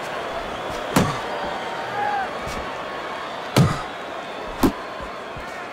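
Boxing gloves land on a body with heavy thuds.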